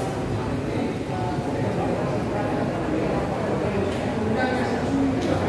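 Many voices murmur and echo through a large indoor hall.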